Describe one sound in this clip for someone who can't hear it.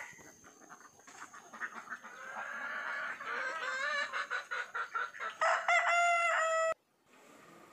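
Chickens cluck and squawk nearby.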